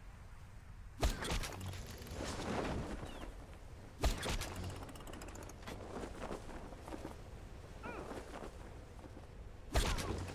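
A parachute snaps open and flaps in the wind.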